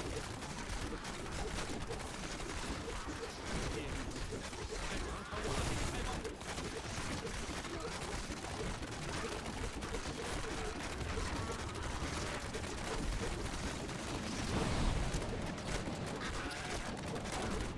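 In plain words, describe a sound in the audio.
Game spell effects crackle and boom as a battle rages.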